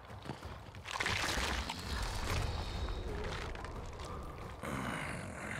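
A huge creature roars with a deep rumble.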